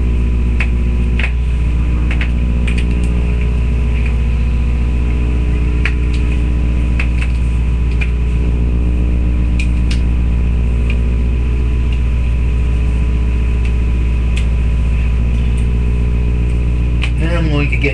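A rubber balloon squeaks and rustles as hands rub it.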